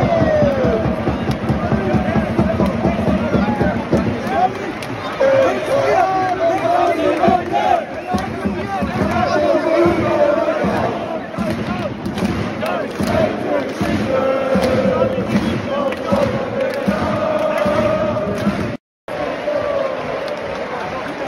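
A large crowd of fans cheers and chatters loudly all around, heard outdoors.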